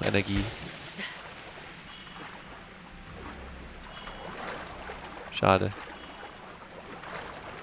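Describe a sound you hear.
A game character splashes while swimming through water.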